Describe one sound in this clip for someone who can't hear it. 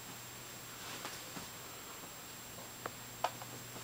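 A small dog's paws thump softly on carpet.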